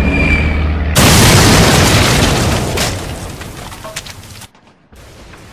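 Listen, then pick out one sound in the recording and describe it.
A loud explosion bursts and slowly fades away.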